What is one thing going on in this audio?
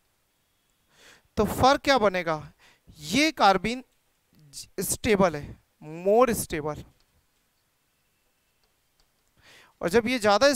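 A man lectures clearly into a close microphone, speaking with emphasis in short bursts.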